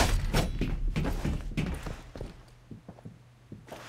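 Footsteps thud on a hard floor.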